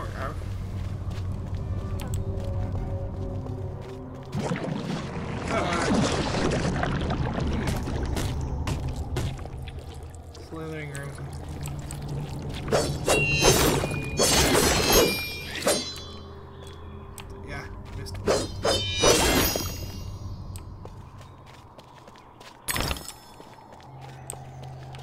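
Light footsteps run over stone.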